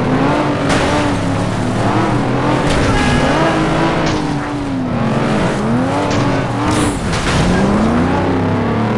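A race car engine revs up and down through gear changes.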